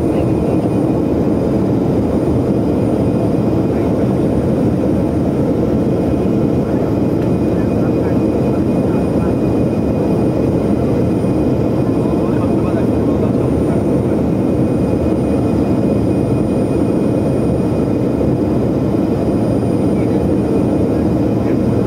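An aircraft engine drones steadily inside a cabin.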